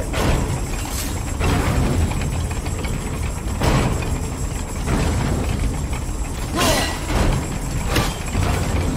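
Metal clanks sharply at intervals.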